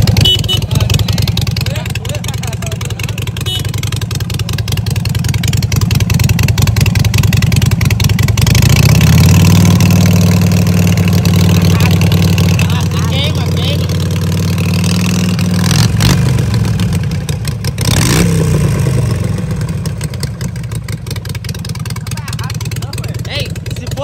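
A motorcycle engine idles with a deep, rumbling beat and revs up loudly.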